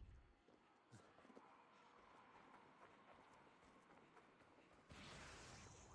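Footsteps patter quickly over dry leaves.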